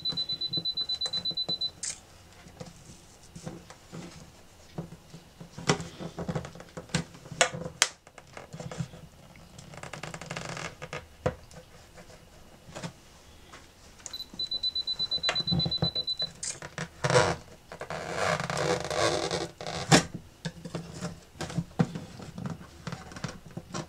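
A thin metal blade scrapes and taps against wood.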